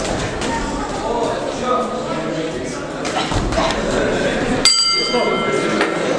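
A crowd of people talks and calls out in a large echoing hall.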